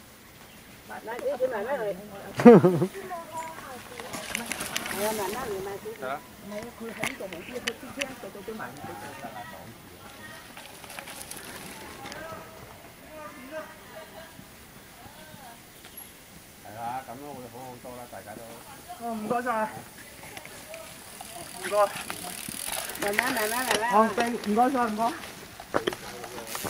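A man shouts encouragement nearby.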